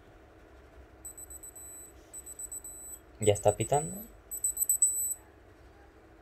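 A digital thermometer beeps in quick high chirps.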